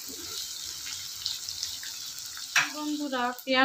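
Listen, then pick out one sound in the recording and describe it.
Onions sizzle and crackle in hot oil.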